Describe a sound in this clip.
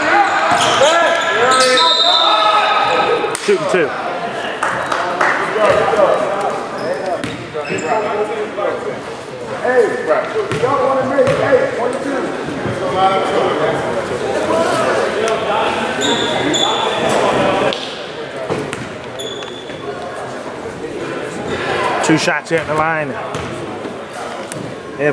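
A crowd of spectators talks and shouts, echoing in a large hall.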